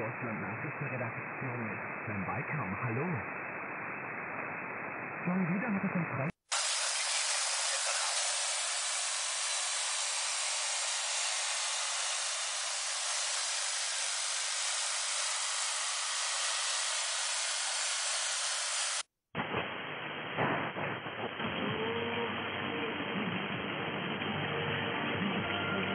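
A radio receiver hisses and crackles with static as it is tuned between stations.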